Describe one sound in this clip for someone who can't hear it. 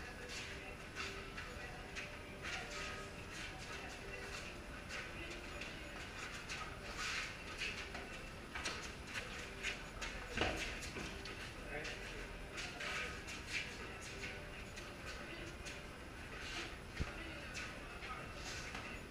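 Sneakers squeak and scuff on a concrete floor.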